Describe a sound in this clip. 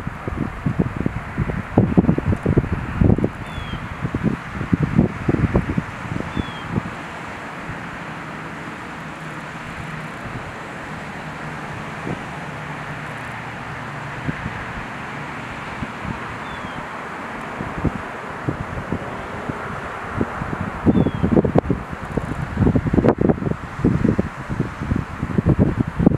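Wind gusts outdoors in low rumbling bursts.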